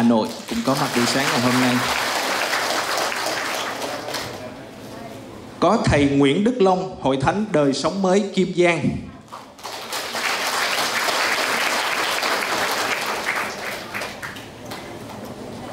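A large crowd applauds and cheers in a big room.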